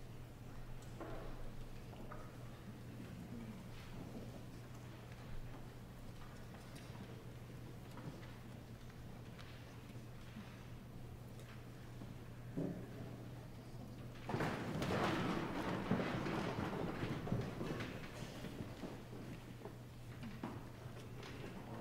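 An orchestra plays softly in a large echoing hall, then swells louder.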